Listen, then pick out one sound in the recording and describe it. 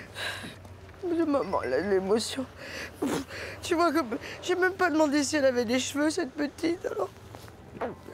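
A woman speaks tearfully, close by.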